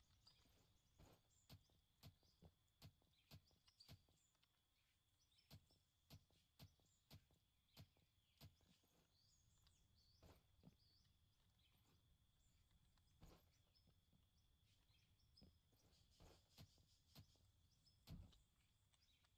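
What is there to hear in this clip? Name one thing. A pickaxe thuds softly into earth, again and again.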